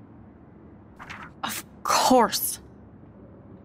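A second young woman answers in a sharp, mocking tone.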